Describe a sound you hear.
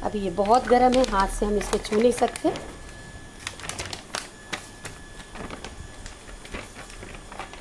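A plastic wrapper crinkles and rustles.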